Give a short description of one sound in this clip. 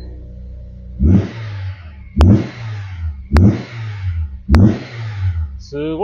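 A car engine revs up sharply several times and drops back.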